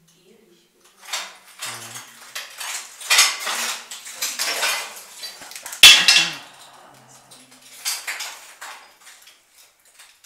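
Debris crunches and clatters as someone moves through rubble.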